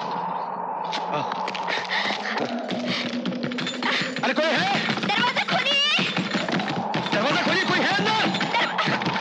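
A man bangs his fist hard on a wooden door.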